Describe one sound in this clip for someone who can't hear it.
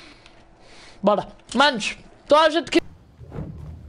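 A teenage boy talks into a headset microphone with animation.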